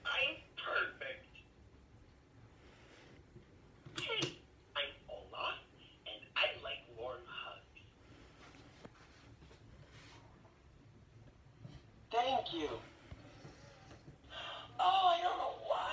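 A toy speaks in a chirpy cartoon voice through a tiny tinny speaker.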